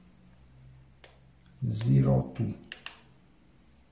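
A button on a thermostat clicks when pressed.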